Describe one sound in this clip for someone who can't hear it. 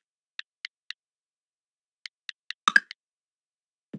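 Short soft menu clicks tick in quick succession.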